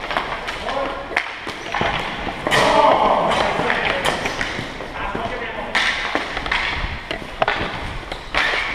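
Hockey sticks clack against a ball and the floor in a large echoing gym.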